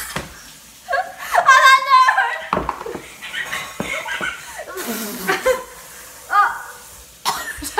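A teenage girl talks excitedly close by.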